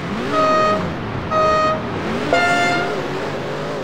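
Electronic countdown beeps sound, the last one higher.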